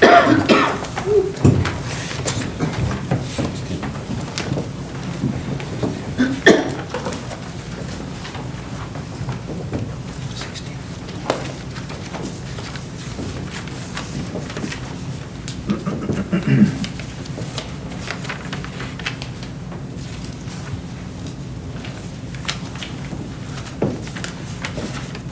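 A piano plays along with a choir.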